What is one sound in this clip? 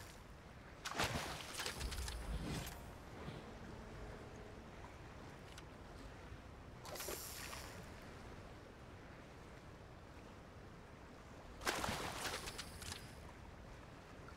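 A fish splashes as it is reeled out of the water.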